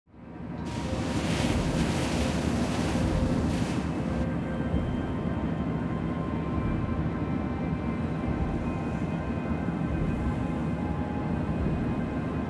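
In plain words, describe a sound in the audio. A submarine's engine rumbles low and steadily.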